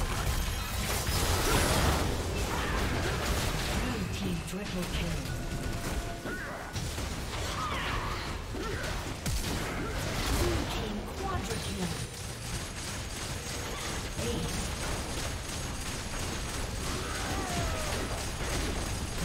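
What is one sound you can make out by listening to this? Game spell effects crackle and whoosh in a fast fight.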